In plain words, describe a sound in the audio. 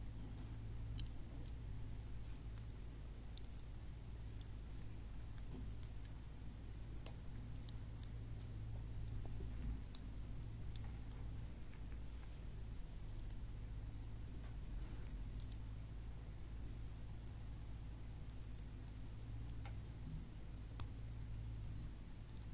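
Small plastic bricks click softly as they are snapped together.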